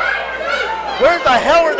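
A woman shouts loudly close by.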